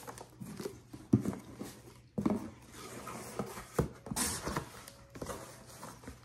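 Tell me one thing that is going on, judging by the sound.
Cardboard rustles and crinkles as a box is handled.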